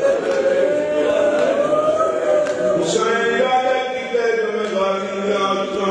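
A man chants loudly into a microphone, heard through loudspeakers.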